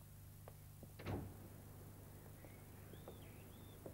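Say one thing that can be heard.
A front door opens.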